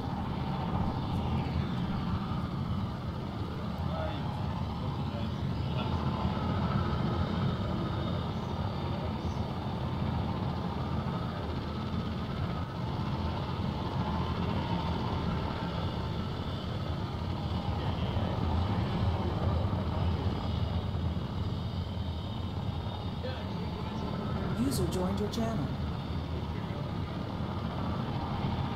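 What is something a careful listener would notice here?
A gunship's engines roar steadily.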